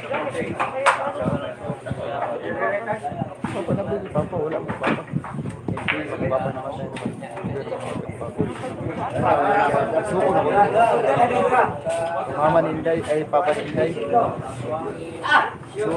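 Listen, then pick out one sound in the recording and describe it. Pool balls click sharply against each other on a table.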